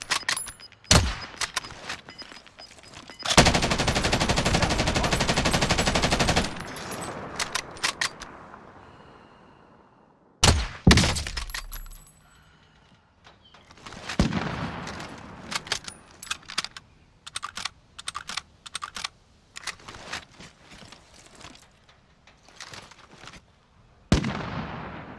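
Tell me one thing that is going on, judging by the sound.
A sniper rifle fires with a loud crack that echoes away.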